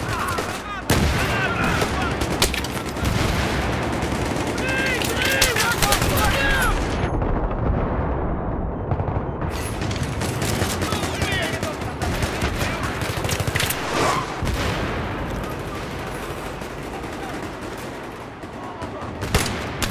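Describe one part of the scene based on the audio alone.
Gunfire and explosions crash and echo in a game's battle.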